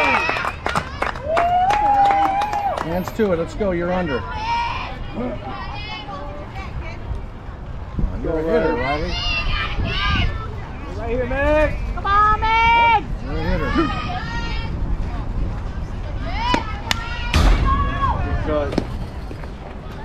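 Young girls chant and cheer loudly outdoors.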